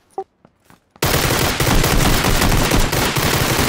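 Rapid rifle gunfire cracks loudly and close.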